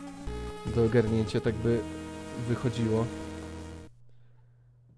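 Electronic game music plays a short tune and then stops.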